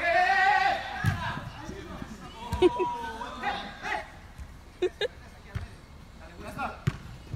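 A soccer ball is kicked with sharp thuds.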